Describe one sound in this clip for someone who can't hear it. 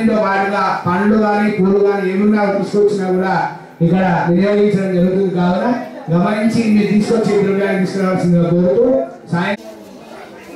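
A man chants steadily in a deep voice through a microphone.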